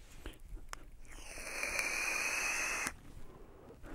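A man draws on an electronic cigarette with a steady crackling hiss.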